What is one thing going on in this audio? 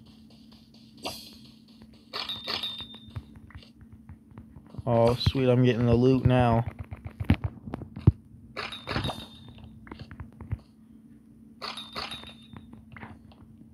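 Blocks break with crunching pops.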